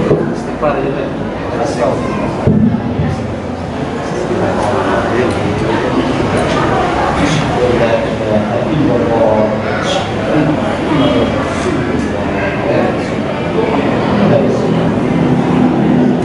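A young man speaks steadily into a microphone, reciting.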